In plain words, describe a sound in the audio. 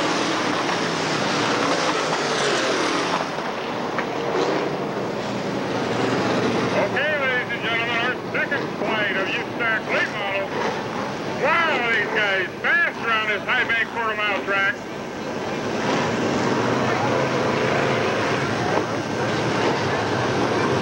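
Race car engines roar loudly as cars speed around a dirt track outdoors.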